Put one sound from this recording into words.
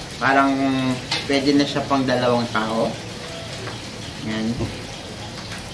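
A spoon clinks against a plate.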